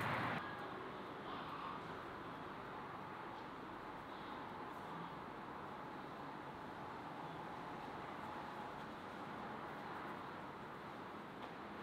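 Fingers pinch soft dough closed.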